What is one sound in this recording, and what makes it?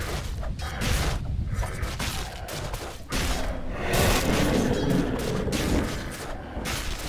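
Game fighting sounds clash and burst with magic blasts.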